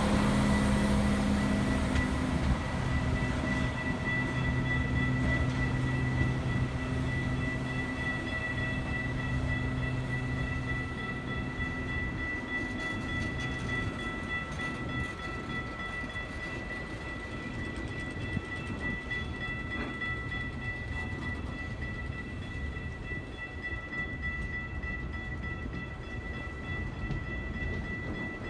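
A freight train rolls past close by, its wheels rumbling and clacking on the rails.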